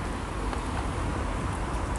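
A car drives slowly along a street.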